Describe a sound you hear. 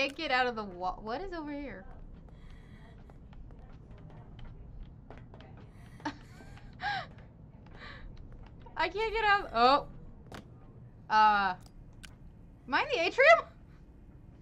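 A young woman talks excitedly into a microphone, in short bursts.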